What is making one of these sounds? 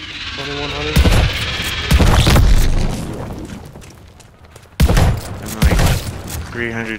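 A shotgun fires several loud blasts.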